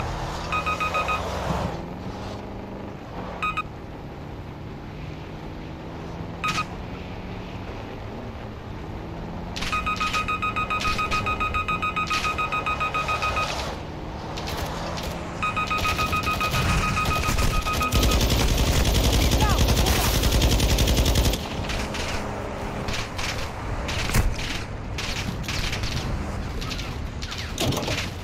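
An engine rumbles steadily as a truck drives.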